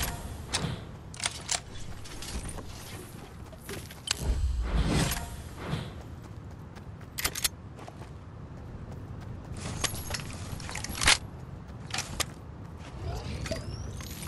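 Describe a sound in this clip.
Footsteps patter quickly on dirt.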